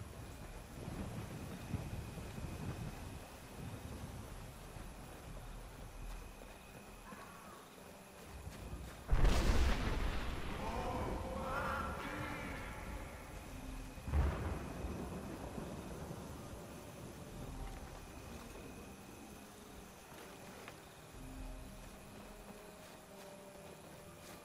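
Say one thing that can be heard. Footsteps crunch slowly over dirt and stone.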